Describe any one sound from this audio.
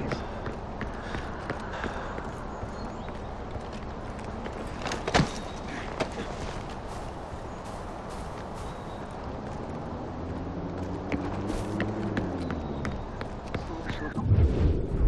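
Footsteps crunch on gravel and dirt at a steady walking pace.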